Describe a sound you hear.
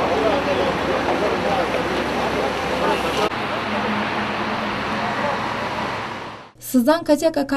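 A crowd of men talks in a noisy jumble outdoors.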